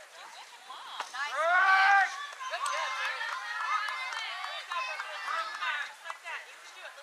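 Young girls cheer and shout outdoors.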